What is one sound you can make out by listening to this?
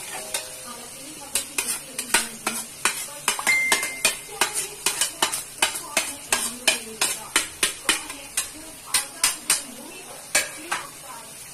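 A spatula taps against a plate.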